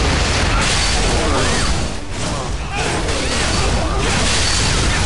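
Metal blades clash and slash in a fast fight.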